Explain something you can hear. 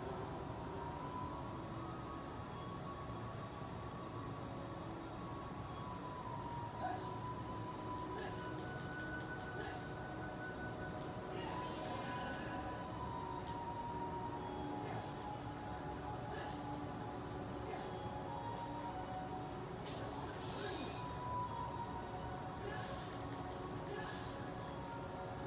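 Video game music plays through a television speaker.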